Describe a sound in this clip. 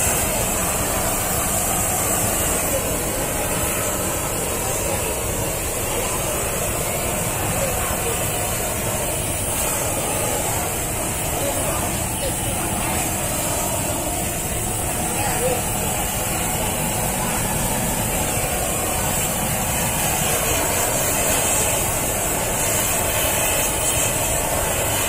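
A gas torch roars steadily, outdoors.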